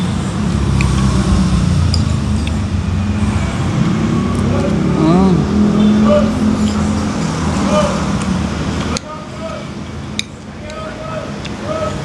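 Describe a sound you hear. A spoon scrapes against a plate.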